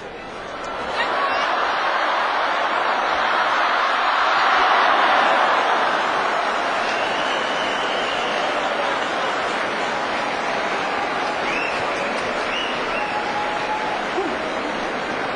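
A large indoor crowd roars and cheers.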